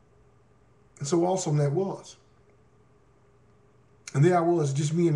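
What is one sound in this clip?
A man speaks calmly, close to the microphone, in short phrases.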